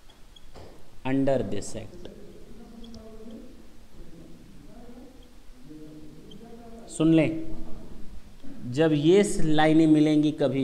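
A man speaks in a lecturing tone, close by.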